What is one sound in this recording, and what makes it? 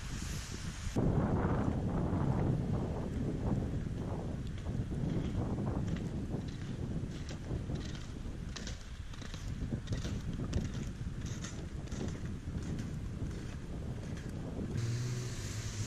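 Skis swish and scrape rhythmically over crusty snow.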